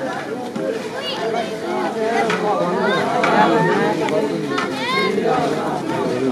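Men's voices shout sharply above the crowd now and then.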